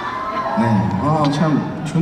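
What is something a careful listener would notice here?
A man sings into a microphone.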